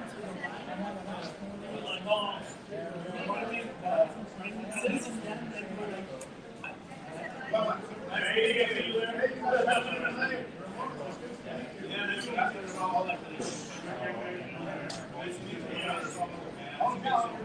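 Several men chat and laugh around a table.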